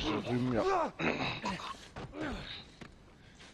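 A man groans and gasps while being choked.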